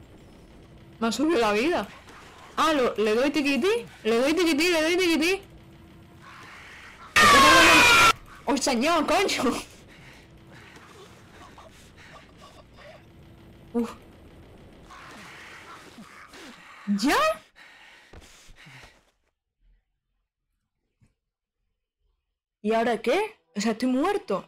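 A young girl talks excitedly close to a microphone.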